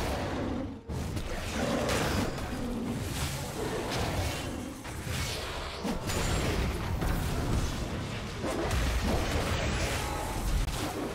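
Fantasy battle sound effects crackle and whoosh.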